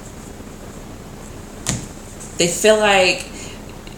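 A deck of cards is set down on a wooden table with a soft tap.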